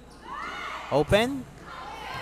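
A volleyball is struck hard.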